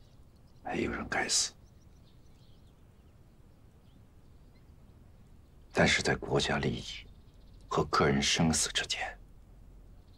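A man speaks softly and calmly close by, in short phrases.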